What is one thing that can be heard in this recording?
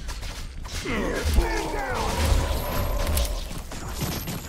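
Explosions boom with fiery bursts.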